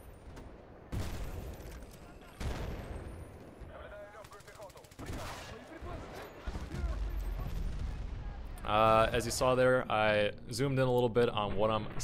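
Rifle shots ring out sharply.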